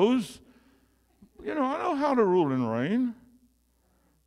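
An elderly man speaks with animation into a microphone, heard through loudspeakers in an echoing room.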